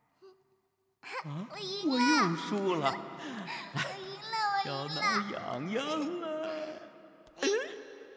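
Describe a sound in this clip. A young girl speaks excitedly.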